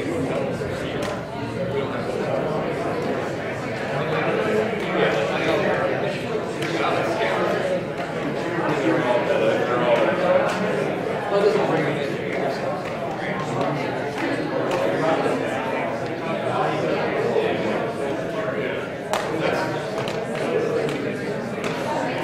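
Many adult voices chatter and murmur at once in a room.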